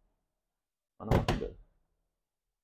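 A hand taps on a glass door.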